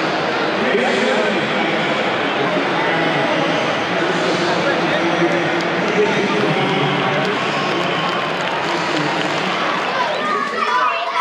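A large crowd roars in an open stadium.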